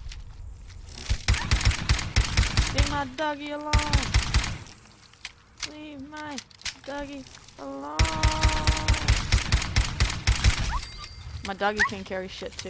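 A pistol fires rapid shots in quick bursts.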